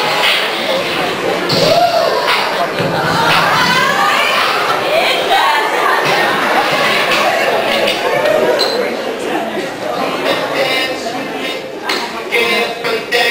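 A group of young women sing together, heard from a distance in a hall.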